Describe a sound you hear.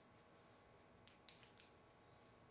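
Laptop keys click a few times.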